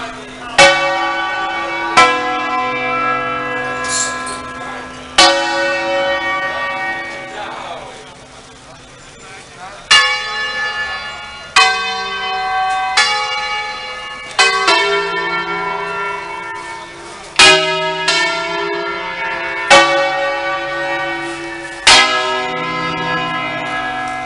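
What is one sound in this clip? Church bells in a tower ring out loudly, each stroke clanging and humming away.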